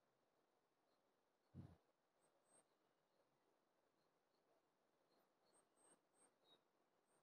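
Birds chirp in short, high calls across the treetops.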